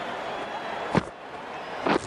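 A cricket bat knocks a ball with a sharp crack.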